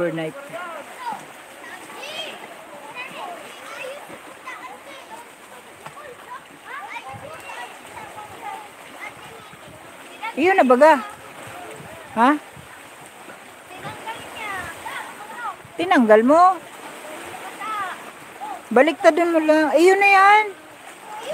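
Small waves lap against rocks.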